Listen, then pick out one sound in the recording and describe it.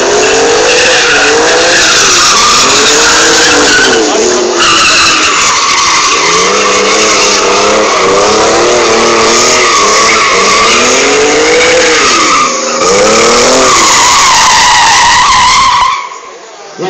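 A car engine revs hard, rising and falling as it drifts.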